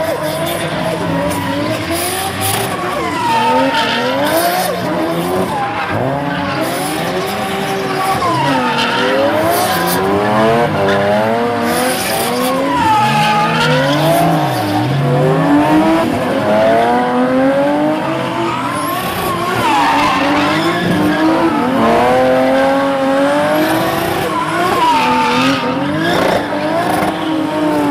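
Drift car engines rev hard.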